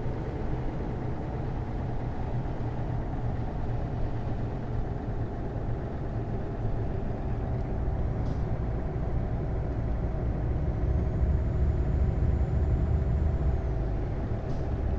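Tyres hum on a wet road.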